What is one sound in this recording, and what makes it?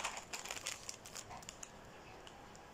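A plastic packet crinkles in a hand.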